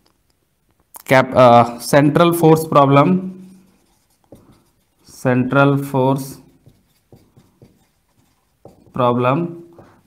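A young man speaks clearly and calmly, close by, in short phrases.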